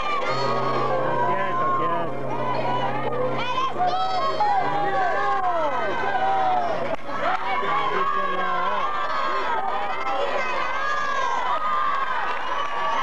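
A band plays music loudly through loudspeakers.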